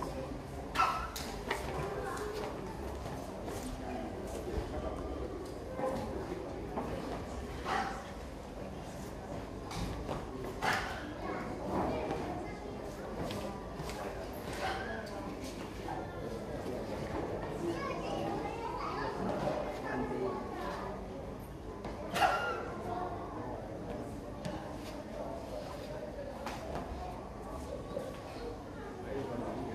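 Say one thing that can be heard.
A man's feet stamp and slap on a hard floor.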